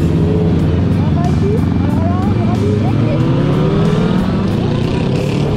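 A motorcycle engine revs up and down.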